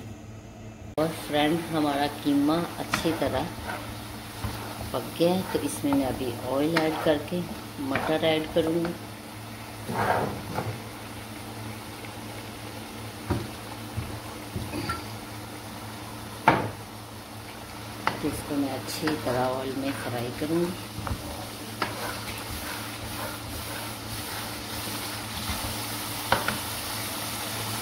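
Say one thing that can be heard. A spatula scrapes and knocks against a metal pan.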